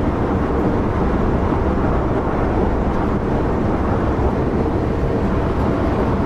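A train rumbles steadily along the rails at high speed.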